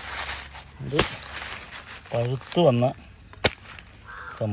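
A blade chops into a tough fruit with sharp thuds.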